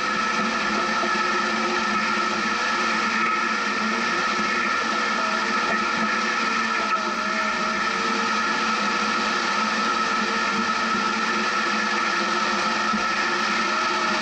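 A vehicle engine drones steadily while climbing.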